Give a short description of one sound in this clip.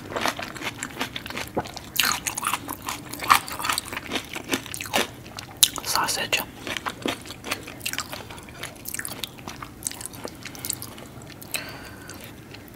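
Wet, sticky sauce squelches and crackles as fingers pull apart food.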